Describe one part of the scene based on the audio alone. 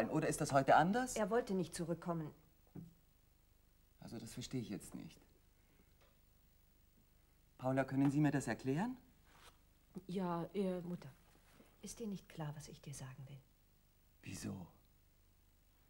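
An older woman speaks with animation.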